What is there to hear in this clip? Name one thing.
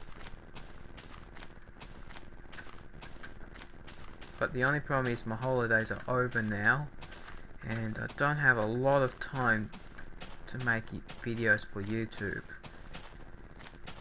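Footsteps crunch on grass.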